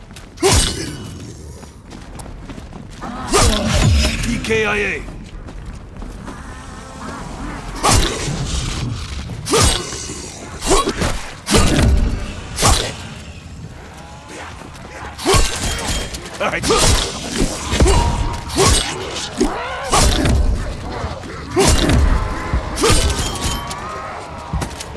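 Blades slash and thud into flesh in quick, repeated hits.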